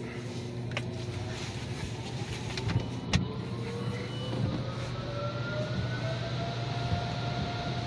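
Water sprays and drums on a car's windscreen.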